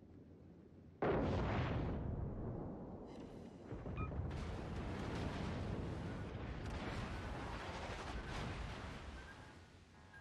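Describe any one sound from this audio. Heavy guns boom in loud, rumbling blasts.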